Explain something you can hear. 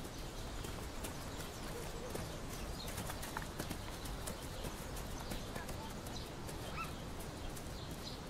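Two girls run through tall grass with soft, rustling footsteps.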